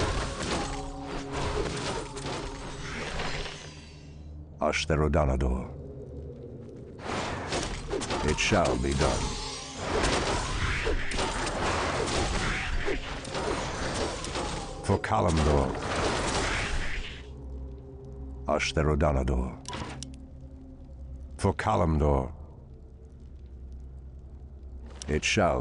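Game units clash in battle with spell and weapon sound effects.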